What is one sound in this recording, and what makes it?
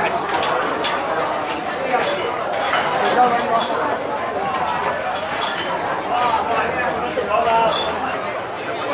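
Dishes and cutlery clink and clatter.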